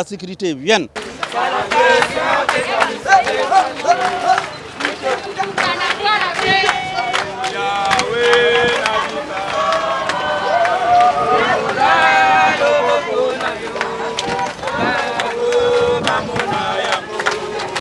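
A crowd of marchers chants and sings together outdoors.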